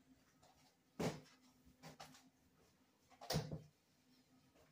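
Close thumps and knocks as a man moves about right by the recorder.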